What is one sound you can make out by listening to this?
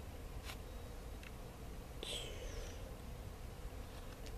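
Fingers tap and rub against a small cardboard box.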